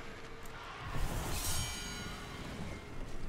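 A burst of energy whooshes and crackles loudly.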